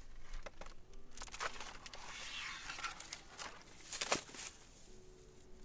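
An elderly man scrapes and chops at a plant with a long hand tool.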